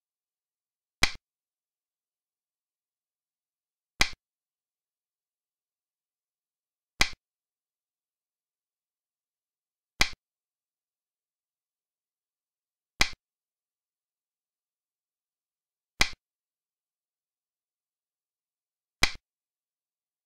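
A game piece clacks down on a board, about every three seconds.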